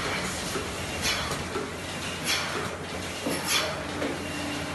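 Metal milking cups clatter against each other.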